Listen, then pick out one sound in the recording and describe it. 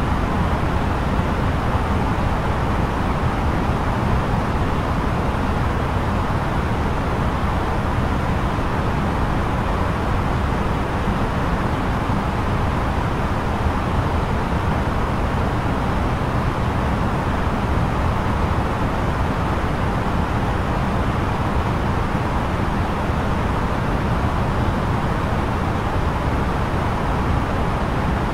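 Steady rushing air and engine hum fill a jet airliner cockpit in flight.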